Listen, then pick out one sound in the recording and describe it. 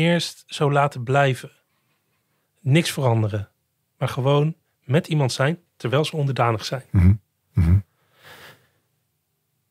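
A man speaks calmly and clearly into a microphone, close by.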